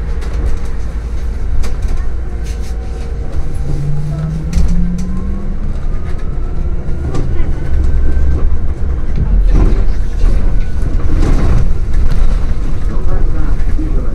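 A hybrid city bus drives along a road, heard from inside at the front.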